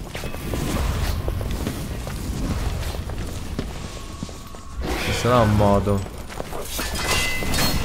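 Blades clash and scrape with metallic rings.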